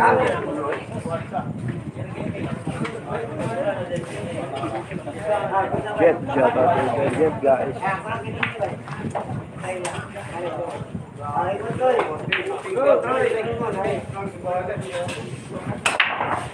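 Billiard balls click together.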